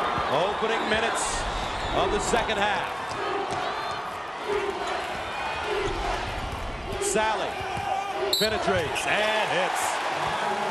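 A large crowd murmurs in a big echoing arena.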